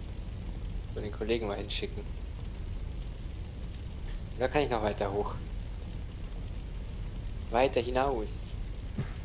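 A young man speaks calmly and briefly into a close microphone.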